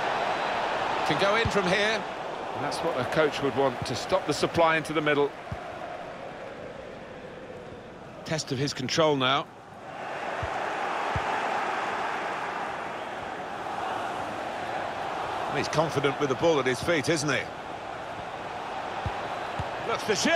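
A stadium crowd murmurs and roars steadily.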